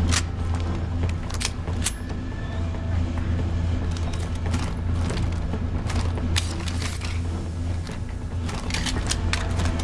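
Metal weapon parts click and clatter as guns are switched.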